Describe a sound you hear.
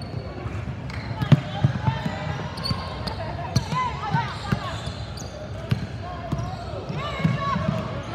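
Young girls call out to each other.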